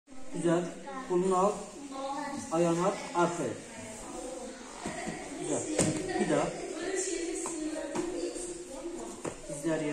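Children's bodies shuffle and thump on a padded mat.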